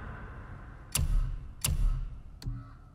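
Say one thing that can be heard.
Short menu clicks sound.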